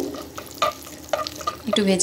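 A spoon scrapes against a metal pan.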